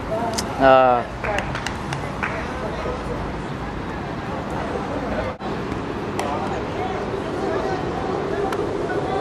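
Young men call out faintly to each other outdoors.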